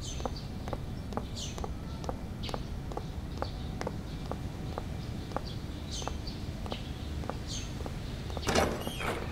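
High heels click steadily on pavement.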